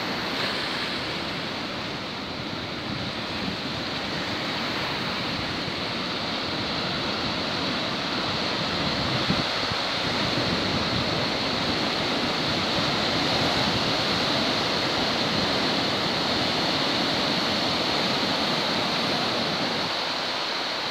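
Waves crash and churn against rocks close by.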